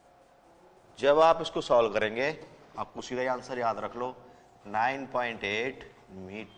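A man speaks clearly and steadily, as if explaining a lesson.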